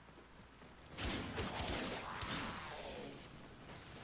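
Blasts and impacts burst out loudly, then fade away.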